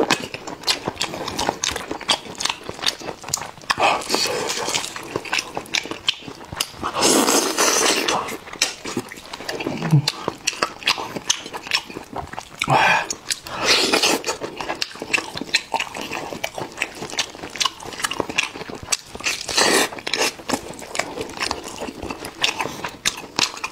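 Meat tears apart with wet, sticky squelches.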